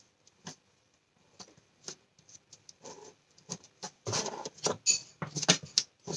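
A marker pen scratches softly on card.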